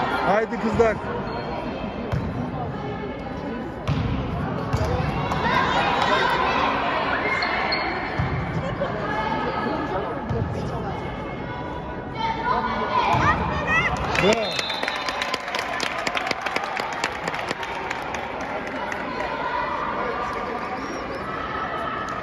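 Young girls shout and call out in a large echoing hall.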